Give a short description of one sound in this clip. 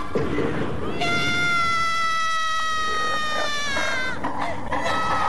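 A young woman screams loudly in terror.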